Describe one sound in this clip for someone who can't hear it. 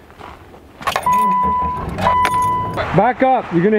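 A car's warning chime beeps repeatedly.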